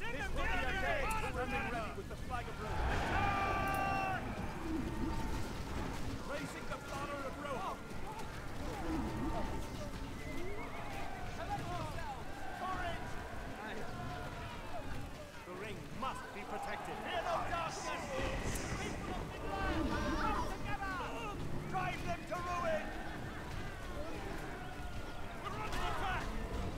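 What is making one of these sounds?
Many soldiers shout and cry out in battle.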